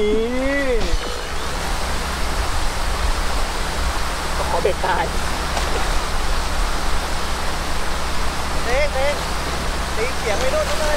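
A hooked fish splashes and thrashes in the water.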